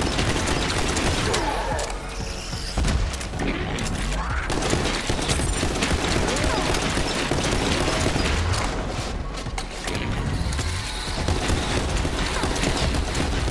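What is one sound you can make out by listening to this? Explosions boom and crackle with fire.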